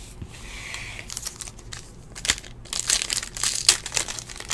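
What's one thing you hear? A foil wrapper crinkles and tears as hands open a card pack.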